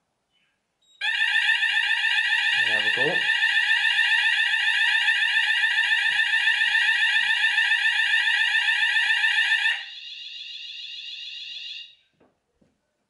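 A smoke alarm sounds a loud, shrill, rapidly pulsing tone close by, then turns quieter and stops.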